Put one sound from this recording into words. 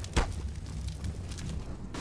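Flames crackle and roar close by.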